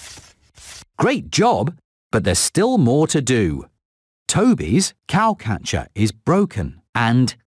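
A man speaks with animation, close to the microphone.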